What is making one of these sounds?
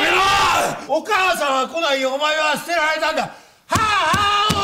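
An older man shouts excitedly.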